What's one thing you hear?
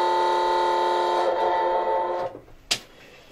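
A loud goal horn blares steadily nearby.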